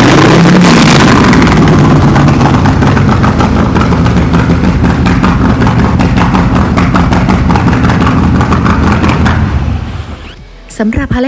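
A motorcycle engine roars loudly as its throttle is revved.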